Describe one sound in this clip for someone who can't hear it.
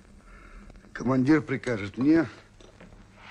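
A man speaks with strain nearby.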